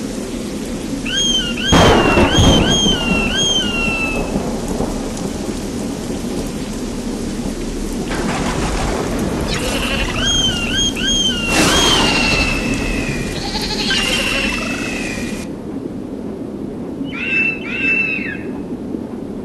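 An eagle screeches in repeated sharp cries.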